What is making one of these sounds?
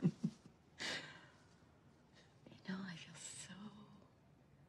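A woman laughs softly close by.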